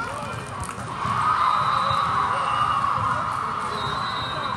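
A crowd cheers and claps after a point.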